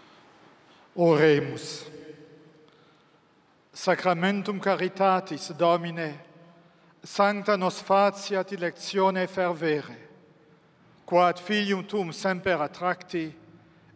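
An elderly man speaks slowly and solemnly through a microphone.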